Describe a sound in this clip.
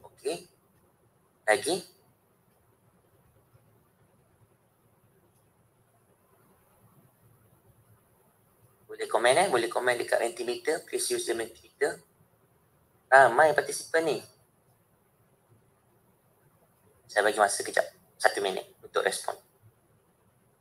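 A man speaks calmly over an online call, in short bursts with long pauses.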